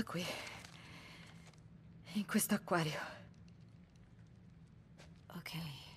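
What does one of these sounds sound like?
Paper rustles as it is unfolded.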